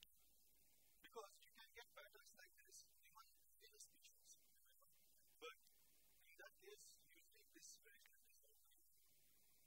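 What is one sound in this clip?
A man lectures, speaking calmly.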